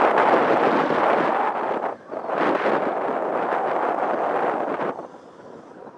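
Wind gusts loudly outdoors, buffeting close by.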